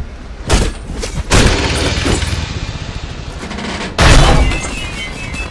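Fiery blasts burst with a roar.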